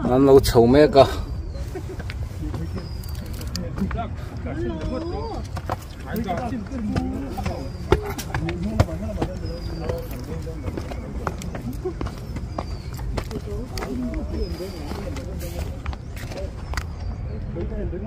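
Footsteps scuff and crunch on a rocky path.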